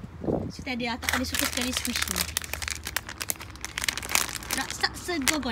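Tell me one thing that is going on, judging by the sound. Plastic packaging crinkles and rustles as a hand handles it.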